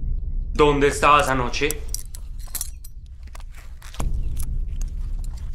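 A metal belt buckle clinks as a man unfastens it.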